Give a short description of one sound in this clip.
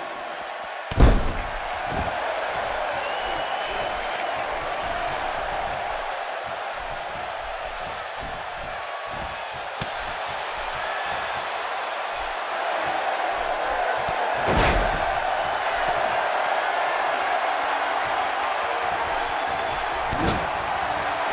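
Heavy bodies slam onto a wrestling ring mat with loud thuds.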